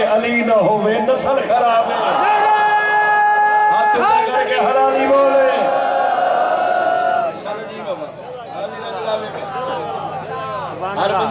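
A young man sings and chants loudly and passionately into a microphone, heard through loudspeakers.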